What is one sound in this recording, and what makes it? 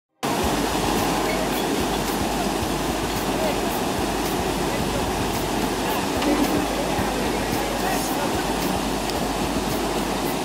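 Water rushes and roars steadily as it pours over a weir and churns below.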